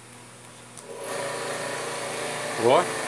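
An electric water pump starts and hums steadily.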